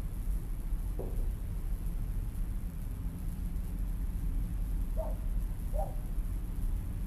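Crows caw a few times in the distance.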